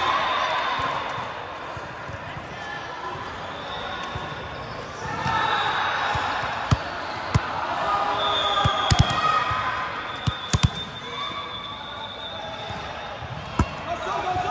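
A crowd of voices chatters in a large echoing hall.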